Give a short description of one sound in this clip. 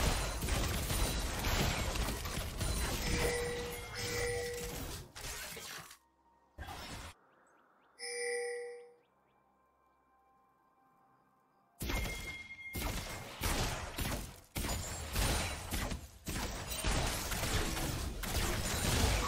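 Magic blasts and clashing hits crackle in a fast fight.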